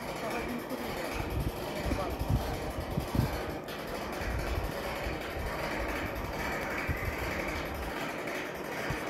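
Wind gusts outdoors, buffeting loudly.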